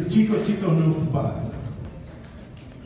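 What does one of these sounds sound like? A man speaks loudly into a microphone through a loudspeaker in an echoing room.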